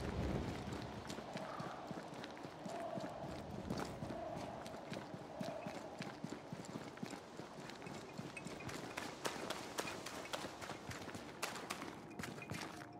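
Footsteps crunch quickly over rough ground and gravel.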